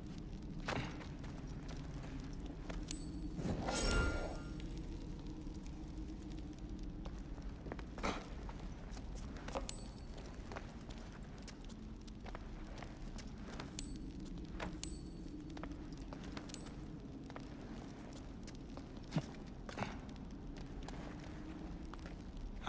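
Footsteps scuff on a stone floor in an echoing chamber.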